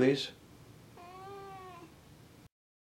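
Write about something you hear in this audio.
A cat meows softly.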